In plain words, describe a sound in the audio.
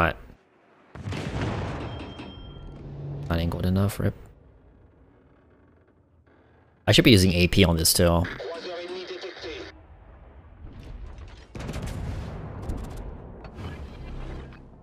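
Ship guns fire with heavy booms.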